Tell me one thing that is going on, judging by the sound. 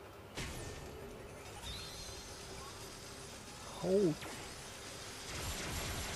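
Coins clatter inside a game machine.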